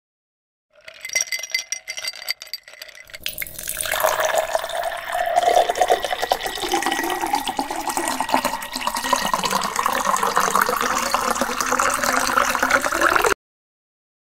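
Liquid pours into a glass.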